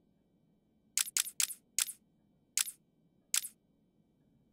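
Short soft menu ticks sound a few times.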